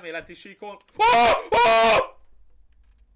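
A young man shouts in fright into a close microphone.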